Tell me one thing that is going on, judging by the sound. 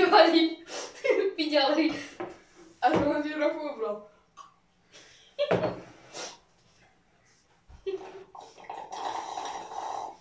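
A boy slurps a drink.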